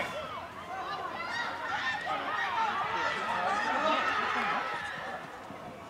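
A crowd of spectators cheers and shouts from the sideline.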